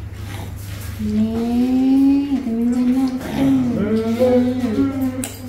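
A baby cries loudly close by.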